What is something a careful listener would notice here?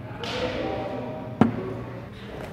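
A phone is set down on a hard table with a light knock.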